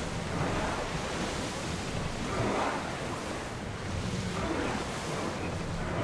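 Water splashes and rushes against a moving ship's hull.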